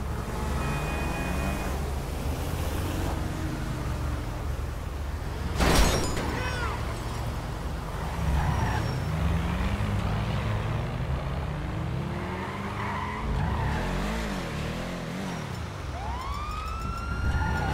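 A car engine revs and roars, rising and falling in pitch.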